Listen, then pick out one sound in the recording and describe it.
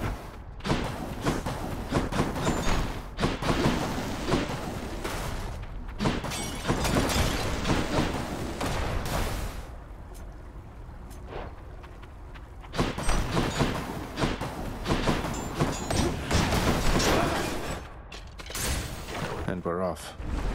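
Magic blasts whoosh and crackle in a fast fight.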